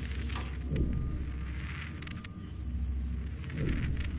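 A small robot's motor whirs as it rolls along.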